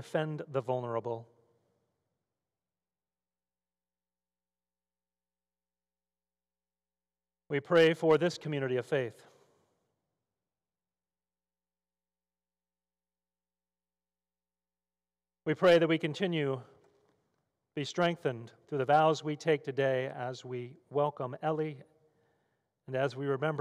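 A middle-aged man reads aloud calmly into a microphone, with pauses.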